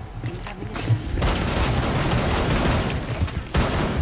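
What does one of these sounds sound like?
Gunshots bang in rapid bursts.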